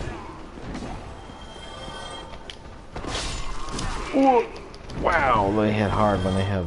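A sword slashes and strikes with a dull thud.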